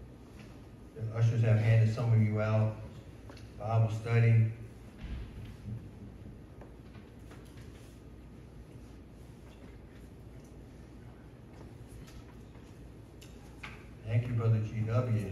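A man speaks through a microphone in a large echoing hall, pausing between phrases.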